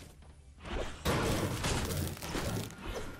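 A pickaxe strikes wooden pallets with hard knocks.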